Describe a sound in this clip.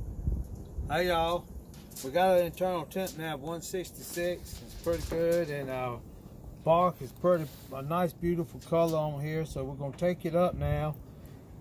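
An elderly man talks calmly and close by.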